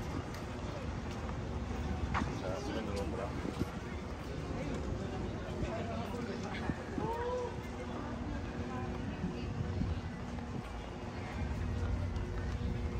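Distant voices of people chatter in an open outdoor space.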